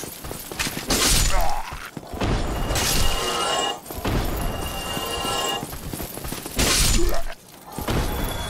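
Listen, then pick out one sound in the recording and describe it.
Swords clash and slash loudly in a fight.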